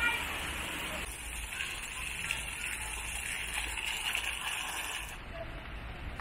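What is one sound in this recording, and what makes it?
Fountain jets splash steadily into a pool.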